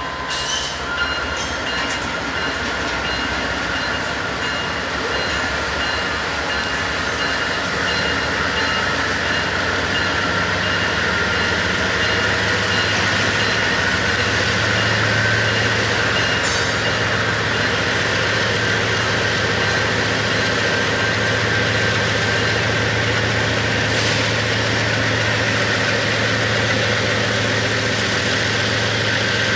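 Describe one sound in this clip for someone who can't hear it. Diesel locomotives rumble loudly and steadily as they pass close by.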